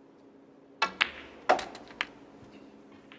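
Snooker balls clack together and knock against the cushions.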